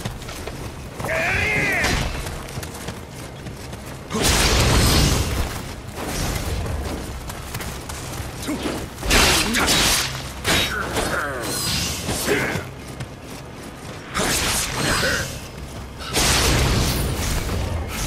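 Blades clash and strike with sharp metallic hits.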